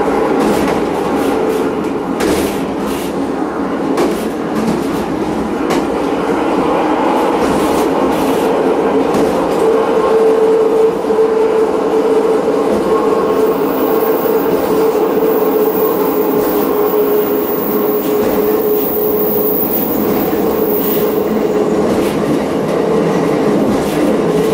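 Wheels click and clatter over rail joints.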